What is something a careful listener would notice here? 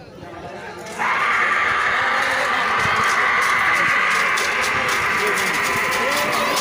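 A large crowd of men cheers and shouts loudly.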